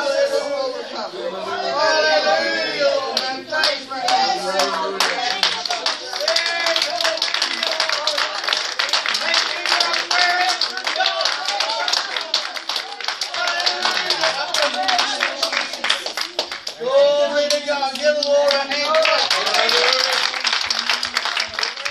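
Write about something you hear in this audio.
Several men and women talk and pray aloud at once, their voices overlapping nearby.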